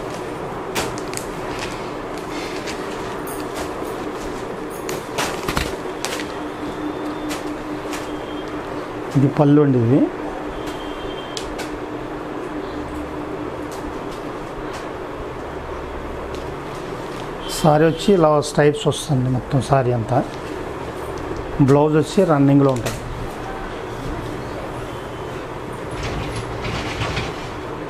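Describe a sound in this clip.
Cloth rustles softly as hands fold and smooth it.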